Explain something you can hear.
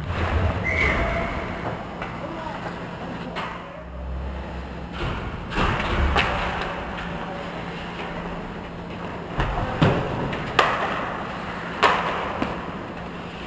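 Ice hockey skates scrape and carve across the ice in an echoing indoor rink.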